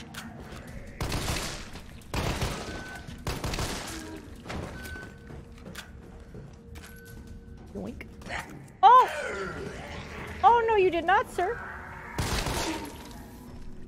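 Gunshots ring out in a game.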